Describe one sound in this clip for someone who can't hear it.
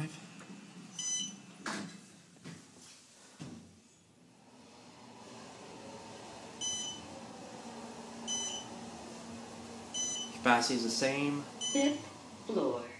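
An elevator chime dings several times as floors pass.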